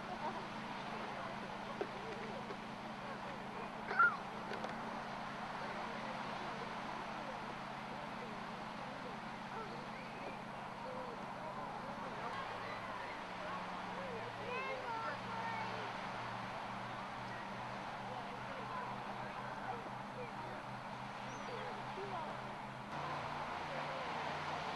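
A crowd of adults chatters at a distance outdoors.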